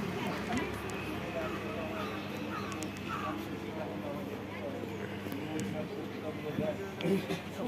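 A crowd chatters around outdoors.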